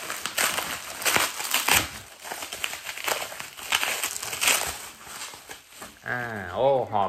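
Plastic bubble wrap crinkles and rustles as it is unwrapped.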